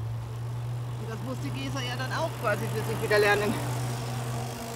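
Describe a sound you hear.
A group of adult cyclists chat as they pass close by.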